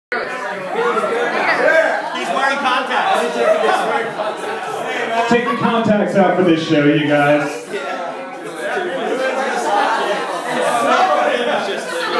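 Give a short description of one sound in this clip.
A band plays live music loudly.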